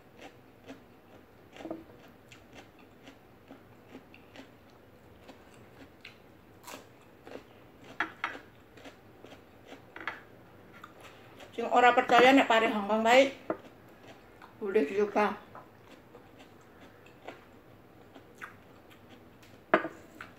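A woman chews raw vegetables close to the microphone.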